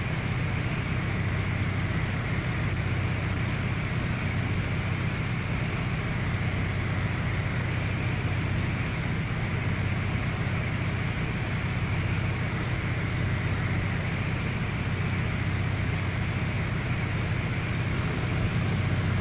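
A propeller aircraft engine drones steadily from inside the cabin.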